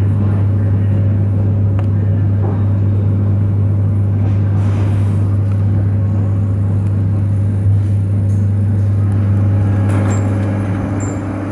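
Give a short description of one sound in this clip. A train's engine hums steadily and loudly from inside a carriage.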